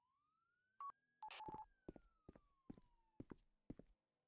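A siren wails briefly, then falls away.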